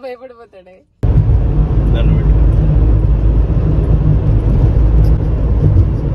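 A car's engine and tyres rumble steadily from inside the car.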